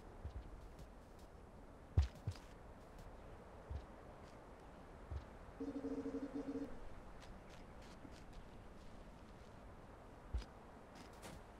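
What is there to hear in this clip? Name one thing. Dull low thuds sound now and then as a small figure jumps and lands.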